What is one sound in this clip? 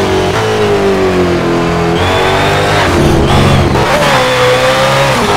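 A car engine revs loudly, its pitch rising and falling with gear changes.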